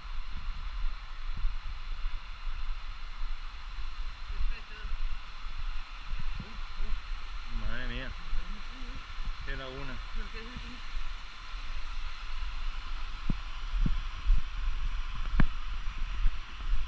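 A waterfall roars steadily in the distance.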